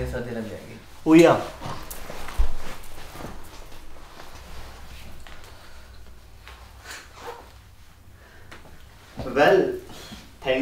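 A young man speaks close by with animation.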